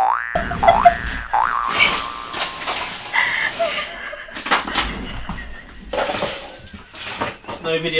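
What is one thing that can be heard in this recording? A woman laughs loudly and breathlessly close to a microphone.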